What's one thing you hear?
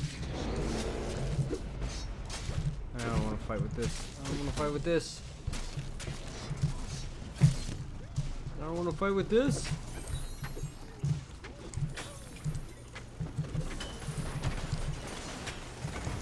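Heavy weapon blows thud and crash in a fast fight.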